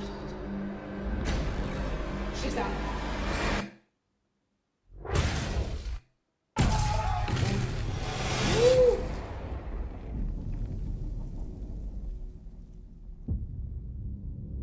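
A dramatic film soundtrack rumbles and booms, with short silent breaks.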